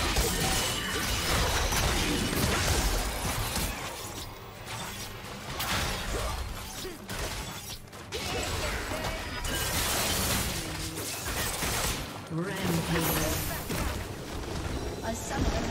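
Game spell effects and attacks crackle and whoosh in a fast battle.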